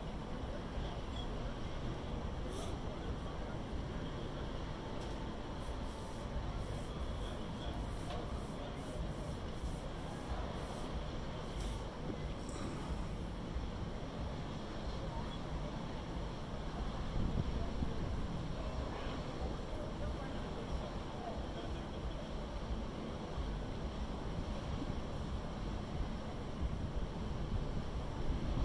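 Water washes along a ship's hull.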